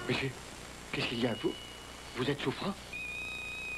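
A man speaks urgently up close.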